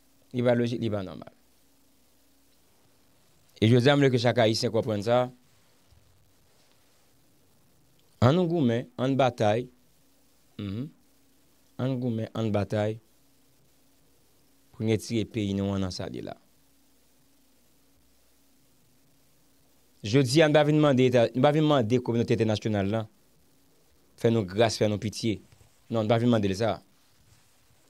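A man speaks close to a microphone in short, measured phrases with pauses.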